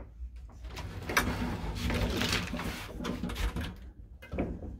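A folding metal gate rattles and clanks as it slides open.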